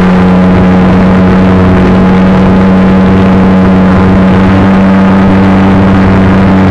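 A small propeller motor drones loudly and steadily close by.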